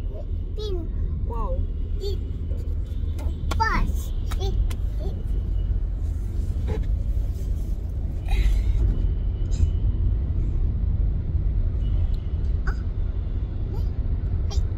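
A young child speaks and squeals in a high voice close by.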